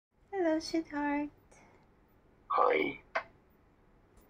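An elderly man speaks briefly over an online call.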